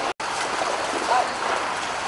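Boots splash through shallow floodwater.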